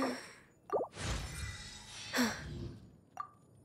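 A bright chime rings out with a shimmering flourish.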